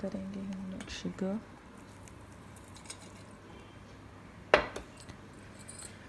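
Flour pours softly into a bowl.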